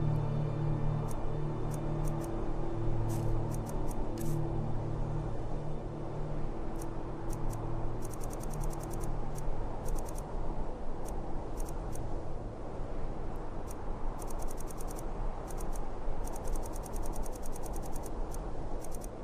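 Menu ticks click quickly in bursts as options scroll by.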